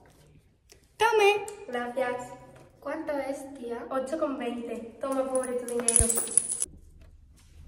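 Two teenage girls talk and giggle close by.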